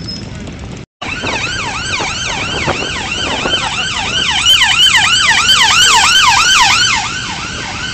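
A siren wails loudly close by as an emergency vehicle passes, then stops.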